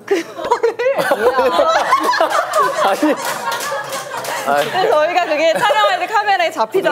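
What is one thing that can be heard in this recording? Several young women laugh together.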